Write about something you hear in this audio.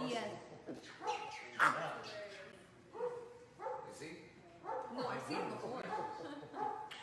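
A chimpanzee hoots and squeals excitedly up close.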